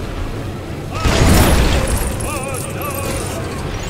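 Rocks break apart with a loud crash.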